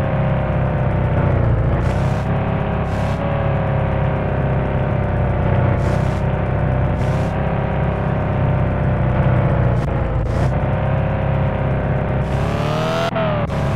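A car engine hums steadily and rises in pitch as it speeds up.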